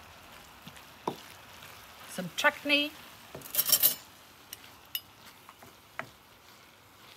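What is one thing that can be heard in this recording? A wooden spoon scrapes and knocks against a pan.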